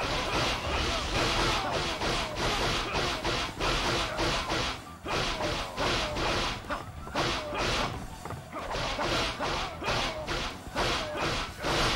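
Soldiers grunt and cry out as they are struck down.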